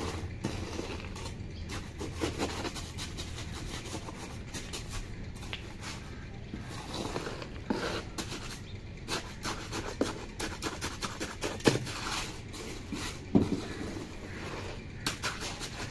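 A hand pats and smooths wet cement.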